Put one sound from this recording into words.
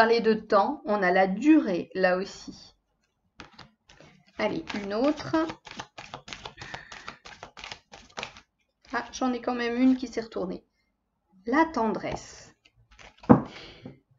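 Cards rustle and shuffle in hands.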